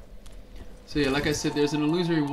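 A young man talks loudly and with animation into a close microphone.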